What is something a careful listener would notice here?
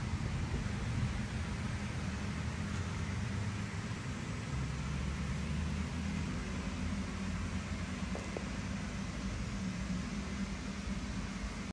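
An air blower hums steadily.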